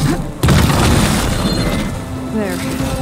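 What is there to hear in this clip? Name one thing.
A large metal machine crashes down with a loud clanking impact.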